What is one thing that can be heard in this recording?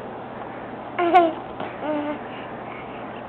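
A baby babbles and coos close by.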